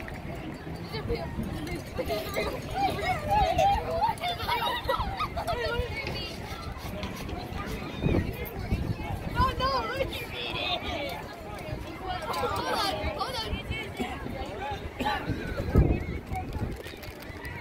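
Young people chat with animation close by.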